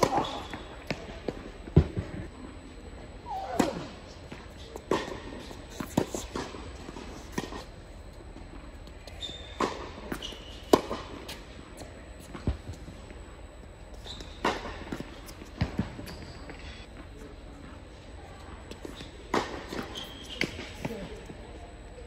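Tennis balls are struck with rackets, with sharp pops ringing through a large echoing hall.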